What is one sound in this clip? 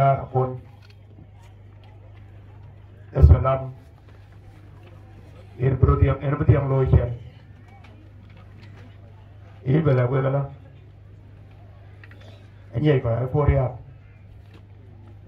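A middle-aged man speaks loudly into a microphone, heard over a loudspeaker, in short bursts with pauses.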